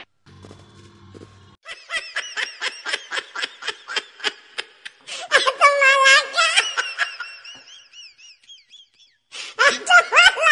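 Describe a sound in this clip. A young man shouts with animation nearby.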